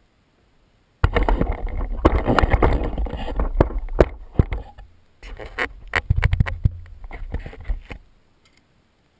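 A fire crackles and roars in a metal bucket.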